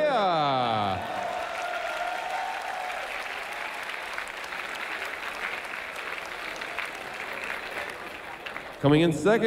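A crowd claps and cheers in a large hall.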